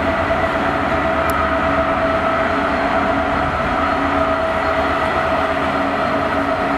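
A diesel locomotive engine throbs loudly close by.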